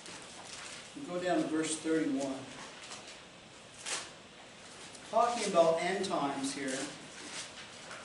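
An older man reads aloud calmly.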